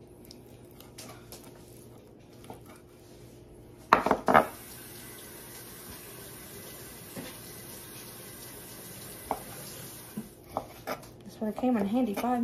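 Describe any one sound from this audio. A knife cuts through raw meat and knocks on a wooden board.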